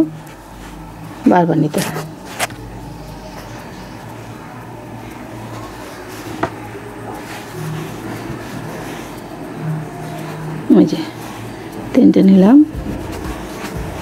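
A crochet hook softly pulls yarn through stitches.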